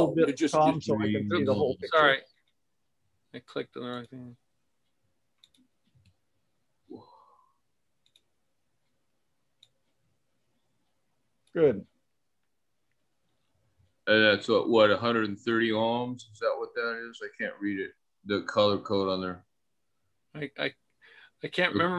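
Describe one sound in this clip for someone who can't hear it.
A middle-aged man talks calmly through an online call, with pauses.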